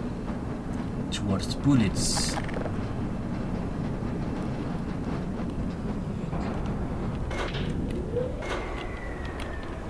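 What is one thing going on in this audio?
A rail cart rumbles along on rails.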